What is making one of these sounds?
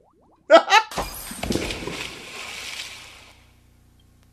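Water splashes and spills out.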